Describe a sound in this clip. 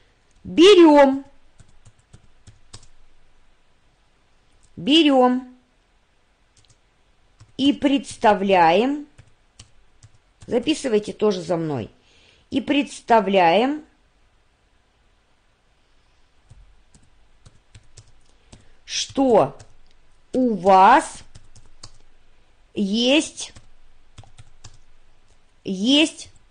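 A woman speaks calmly into a close microphone, in short phrases with pauses.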